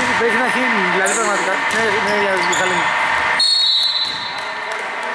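Basketball sneakers squeak on a wooden court.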